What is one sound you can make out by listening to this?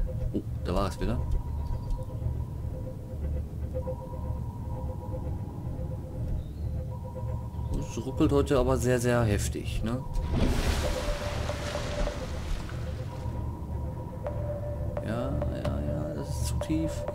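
A low engine hum drones steadily underwater.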